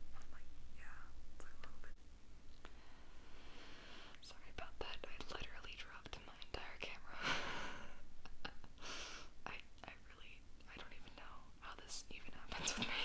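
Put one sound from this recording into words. A young woman whispers softly close to a microphone.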